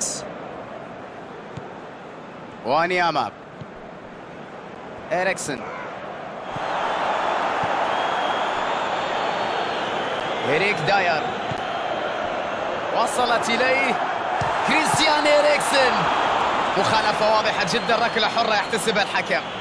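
A large stadium crowd roars steadily, then swells louder.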